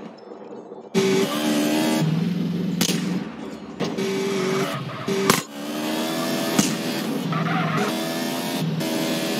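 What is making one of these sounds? A motorcycle engine roars and revs.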